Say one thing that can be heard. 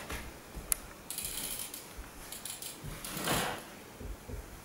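A bicycle rattles as it is lifted and hung up.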